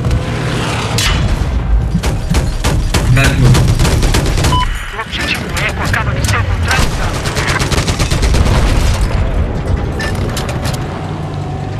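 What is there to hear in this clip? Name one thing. A cannon fires in loud repeated blasts.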